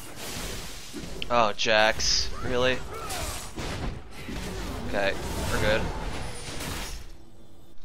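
Video game fight effects clash and crackle in quick bursts.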